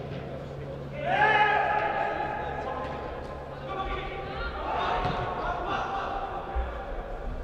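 Young players shout to each other across a large echoing hall.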